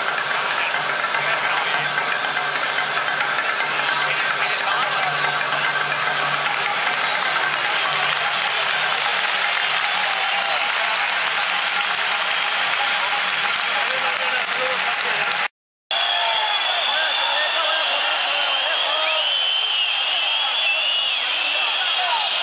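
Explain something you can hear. A large stadium crowd roars and cheers loudly all around.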